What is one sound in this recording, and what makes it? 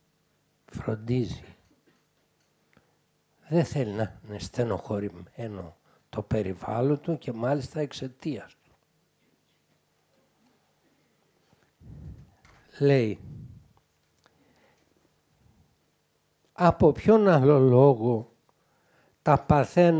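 An elderly man speaks calmly into a close microphone, with pauses.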